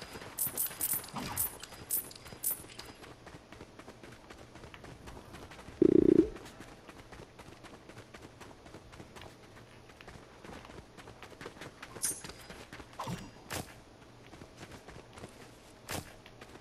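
Bright chimes ring as items are collected.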